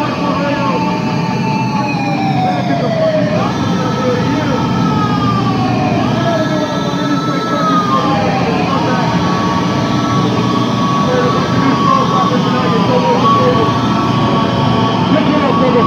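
A band plays loudly.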